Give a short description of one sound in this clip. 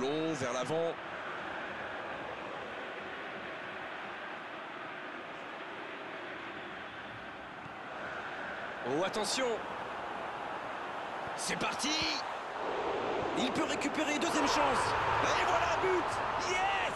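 A large stadium crowd roars steadily and swells louder toward the end.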